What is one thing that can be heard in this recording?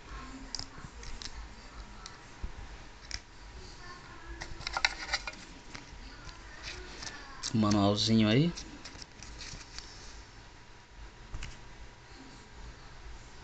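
A wristwatch taps and clicks as it is handled.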